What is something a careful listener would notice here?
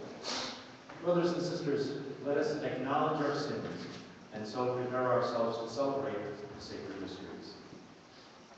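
A congregation sings together in a large echoing hall.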